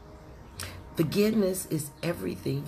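An elderly woman speaks calmly, close to the microphone.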